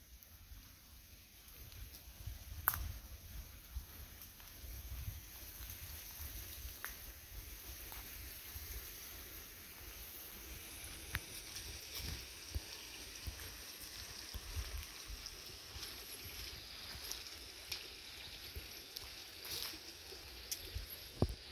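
Dogs' paws patter softly on a dirt path some way off.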